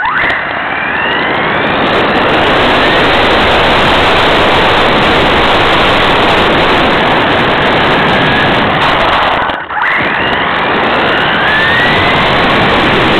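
A small electric motor whines loudly, rising in pitch as it speeds up.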